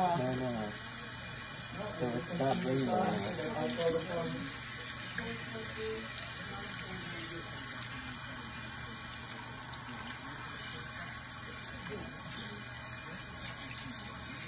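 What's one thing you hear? Water sprays steadily from a hose onto wet hair and splashes into a basin.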